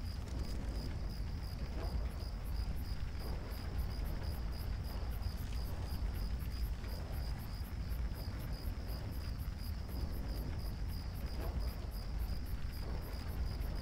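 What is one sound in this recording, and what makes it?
Heavy armored footsteps march in a steady rhythm.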